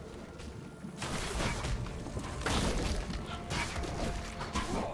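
Video game spell effects crackle and whoosh in a rapid flurry.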